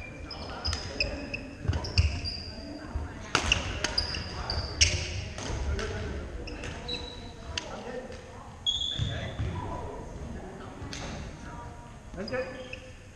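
Shoes squeak sharply on a wooden floor in a large echoing hall.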